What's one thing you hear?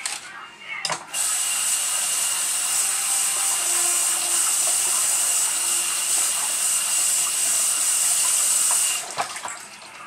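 Water runs steadily from a tap.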